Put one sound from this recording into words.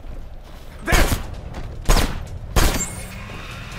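Gunshots fire in quick succession, sharp and loud.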